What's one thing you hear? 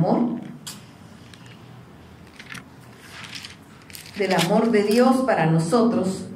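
A middle-aged woman speaks calmly into a microphone, with pauses.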